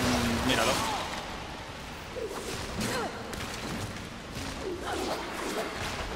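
Blades slash and heavy blows land in a fast fight.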